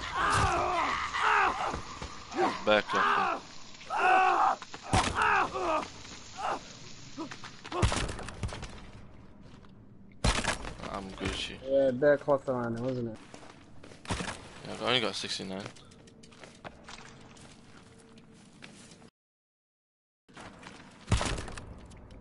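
An axe chops with heavy, wet thuds.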